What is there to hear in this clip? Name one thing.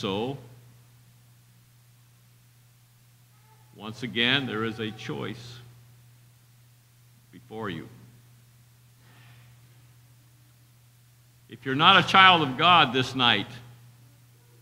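An older man speaks slowly and calmly through a microphone, with long pauses.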